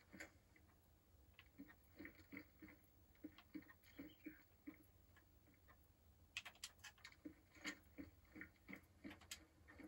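Footsteps knock on wooden floorboards.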